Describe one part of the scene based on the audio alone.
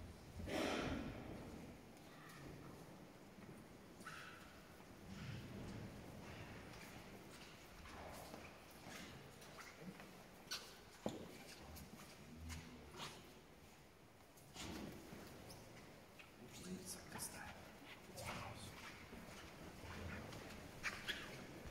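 Footsteps shuffle softly on a stone floor in a large echoing hall.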